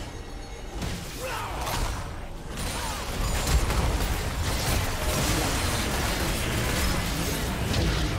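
Spell effects and attack hits from a game clash and burst rapidly.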